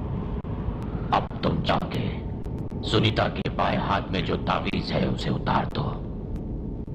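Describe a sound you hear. A young boy speaks earnestly nearby.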